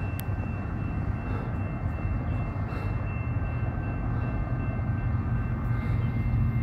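A diesel train rumbles in the distance and slowly grows louder as it approaches.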